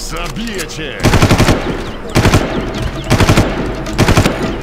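Gunfire bursts out in rapid volleys.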